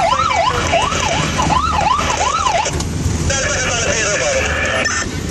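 A fire engine's motor rumbles low and steady.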